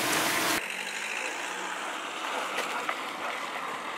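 Footsteps crunch on gravel as a person runs.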